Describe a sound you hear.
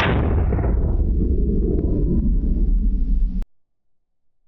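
An explosion booms and rumbles away outdoors.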